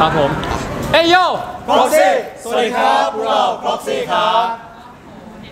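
Several young men speak together in unison, greeting loudly.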